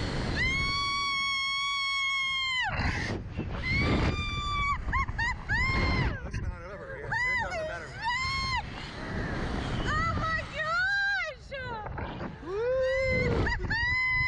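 A man shouts and laughs excitedly, close by.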